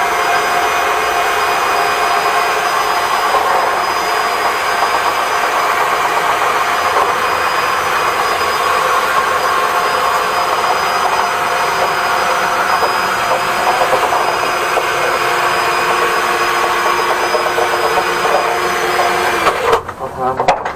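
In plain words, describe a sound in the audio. A vacuum cleaner runs with a steady loud whine and rushing hiss, then switches off.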